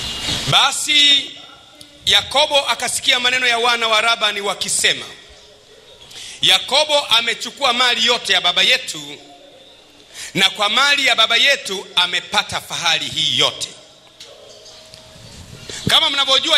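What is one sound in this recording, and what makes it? A man preaches loudly and with animation into a microphone.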